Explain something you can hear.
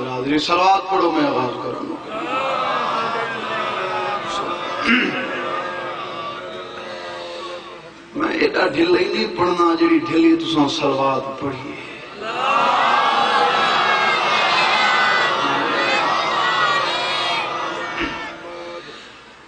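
A young man sings a mournful chant loudly through a microphone.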